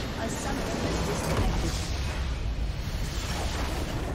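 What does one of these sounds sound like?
A large crystal shatters with a burst of energy.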